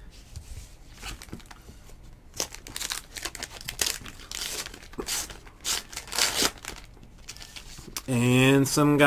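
A foil wrapper crinkles and tears as hands rip it open.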